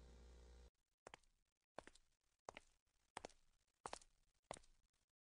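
Footsteps thud at an even pace, drawing closer.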